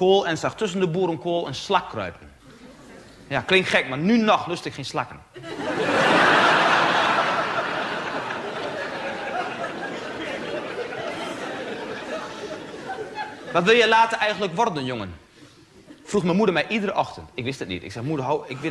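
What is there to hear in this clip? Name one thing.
A man speaks to an audience with animation, heard through a microphone.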